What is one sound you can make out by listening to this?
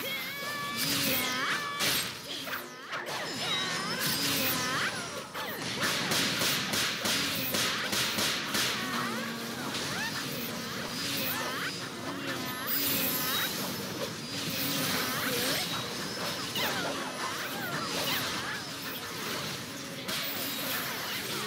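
Magic spells crackle and blast in quick bursts.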